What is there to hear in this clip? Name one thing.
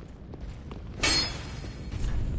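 A sword clangs sharply against stone.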